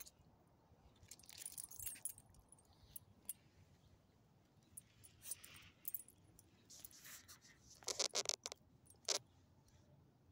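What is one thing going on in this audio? A small dog's metal tag jingles as the dog walks.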